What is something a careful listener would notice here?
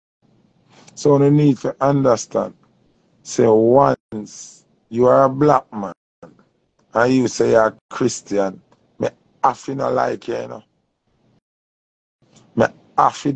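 A man speaks close to the microphone with animation.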